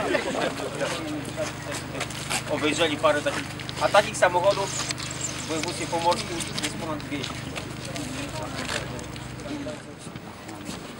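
A man speaks to a small group outdoors.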